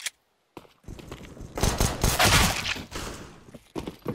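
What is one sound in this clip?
A pistol fires a few sharp shots.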